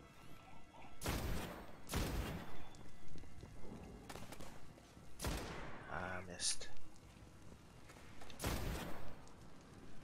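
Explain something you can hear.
A rifle fires loud single shots with a booming echo.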